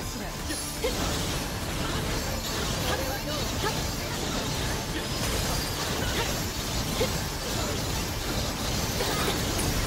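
Ice spells crackle and shatter in a video game battle.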